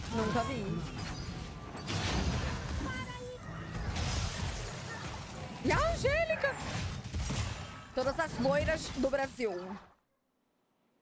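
Electronic game effects clash and whoosh.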